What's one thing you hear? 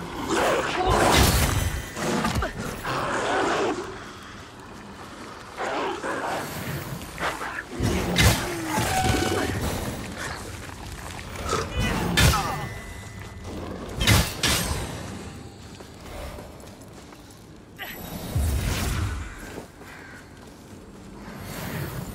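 Swords clash and slash against flesh.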